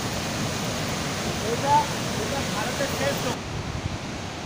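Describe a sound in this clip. Water rushes through a gorge below.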